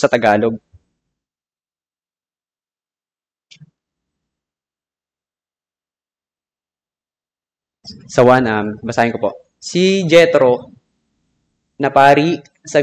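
A young man reads aloud calmly into a microphone, with pauses.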